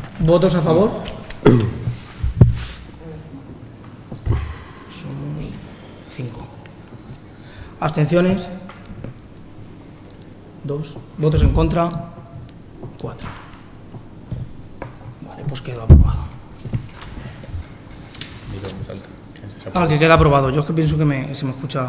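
A man speaks calmly through a microphone in a large room with some echo.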